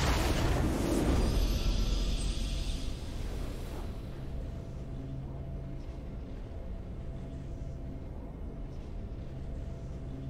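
A triumphant fanfare swells and then settles into a quiet hum.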